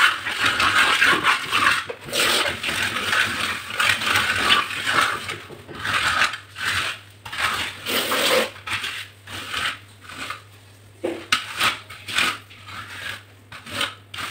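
A trowel scrapes wet mortar across a wall in repeated strokes.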